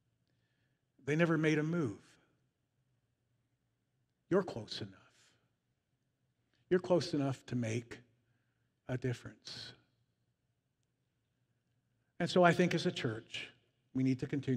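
A middle-aged man speaks calmly through a microphone in a large echoing hall, pausing between phrases.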